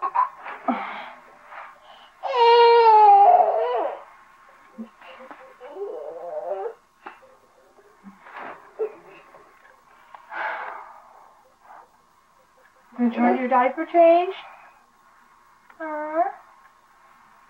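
A young woman talks playfully up close.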